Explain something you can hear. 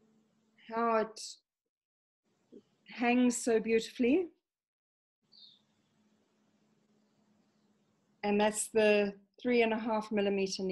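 A middle-aged woman speaks calmly and closely, in short phrases with pauses.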